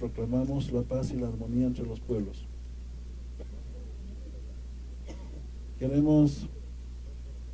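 A middle-aged man speaks into a microphone in short, deliberate phrases, heard through a loudspeaker outdoors.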